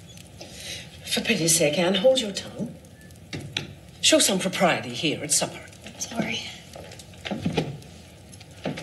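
A man and a woman talk at a dinner table, heard through a loudspeaker.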